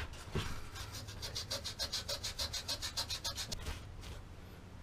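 A hand rubs sandpaper back and forth on metal in quick, even strokes.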